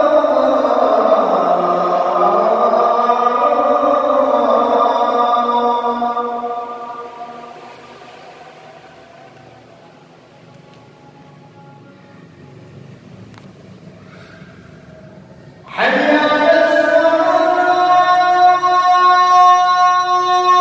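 A man chants a long, melodic call to prayer through a microphone and loudspeaker, echoing in a large hall.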